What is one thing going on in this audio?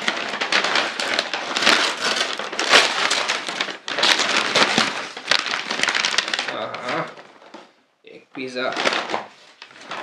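A paper bag crinkles and rustles loudly close by.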